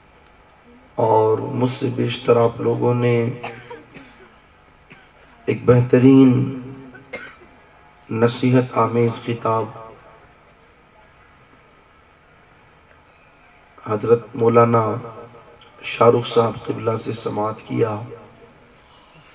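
A man chants in bursts into a microphone, heard through a loudspeaker with a slight echo.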